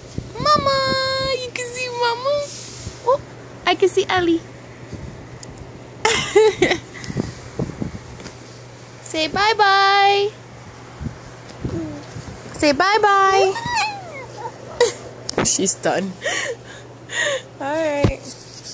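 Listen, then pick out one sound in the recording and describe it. A young woman talks playfully close by, in a sing-song voice.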